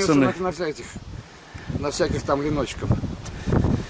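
An elderly man speaks calmly nearby, outdoors.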